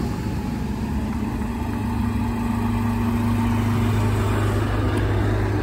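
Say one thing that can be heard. A tractor engine drones as it approaches along the road.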